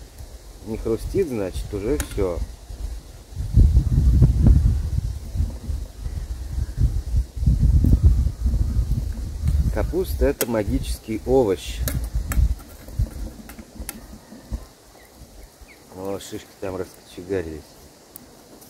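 A man talks calmly up close.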